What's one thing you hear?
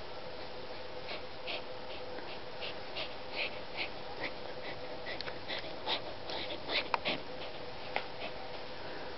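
A small dog snaps and mouths playfully.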